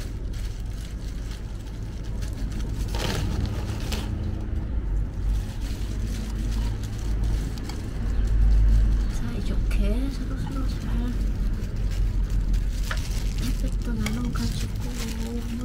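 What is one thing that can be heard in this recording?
Plastic gloves rustle and crinkle close by.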